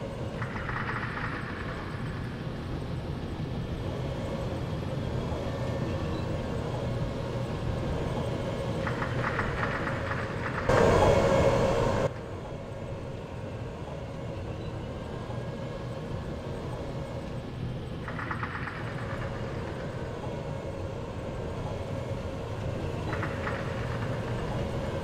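Tank tracks clatter and squeal.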